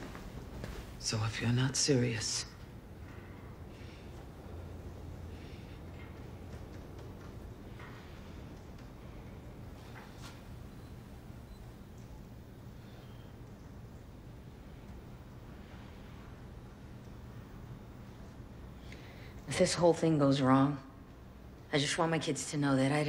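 A woman speaks quietly and calmly, close by.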